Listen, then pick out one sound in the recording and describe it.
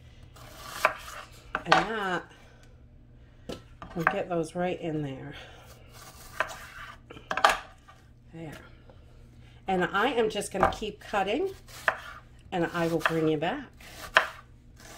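A knife taps and chops against a wooden cutting board.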